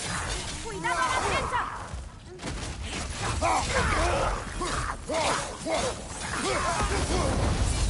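Heavy blows thud against bodies.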